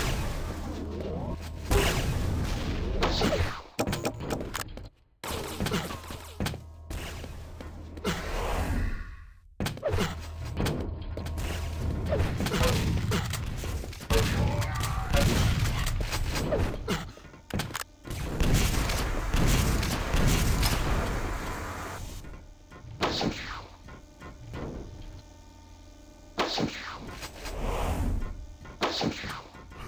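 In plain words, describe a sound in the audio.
Game weapons fire in rapid bursts.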